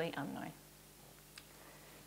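A woman speaks softly close to a microphone.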